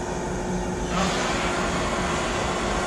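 A torch burner flame roars.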